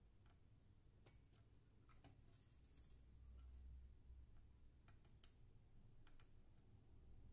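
Fingers tap and click softly against a circuit board.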